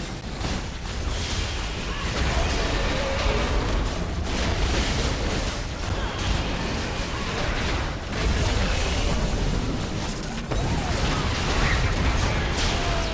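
Magic blasts and clashing hits from a video game battle crackle and boom without pause.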